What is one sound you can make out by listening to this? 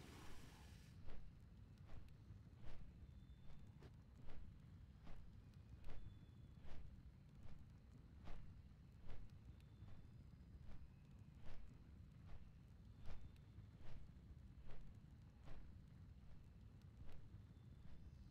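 Heavy footsteps thud steadily at an even pace.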